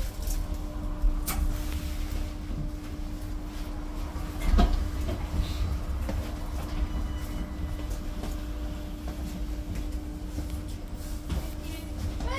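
Bus fittings rattle and clunk as the bus moves.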